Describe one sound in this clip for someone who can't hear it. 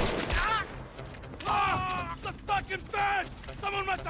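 A man falls heavily to the ground.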